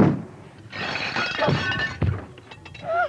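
A woman shouts in distress close by.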